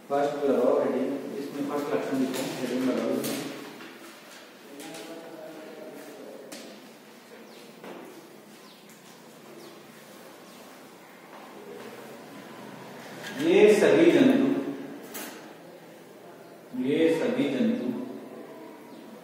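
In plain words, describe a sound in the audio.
A man speaks calmly in a small echoing room.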